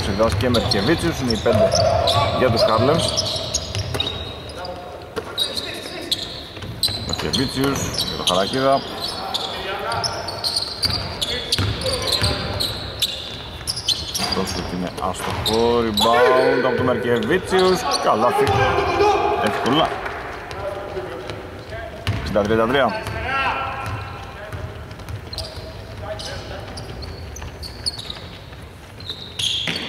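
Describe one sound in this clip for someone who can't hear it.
Young women shout to one another across a large echoing hall.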